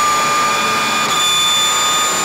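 A race car gearbox clunks through a quick upshift.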